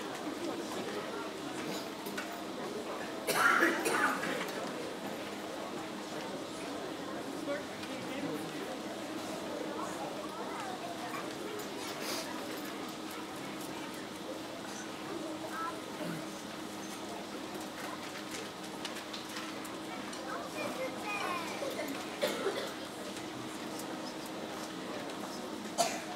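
A school band plays softly.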